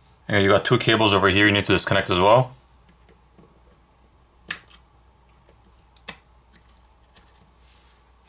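A small metal tool clicks and scrapes against a circuit board.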